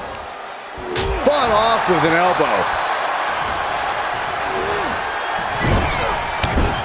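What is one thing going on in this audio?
Heavy thuds land as wrestlers strike and slam each other.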